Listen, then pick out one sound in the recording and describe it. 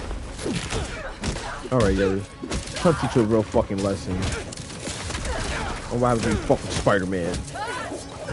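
Swords clash and strike in combat.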